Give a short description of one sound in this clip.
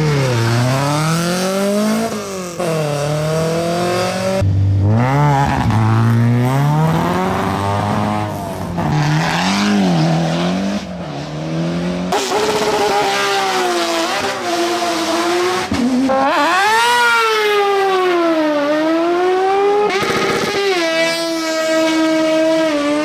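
Rally car engines rev hard and roar as the cars accelerate away, close by.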